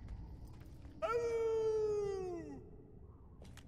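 A man howls like a wolf.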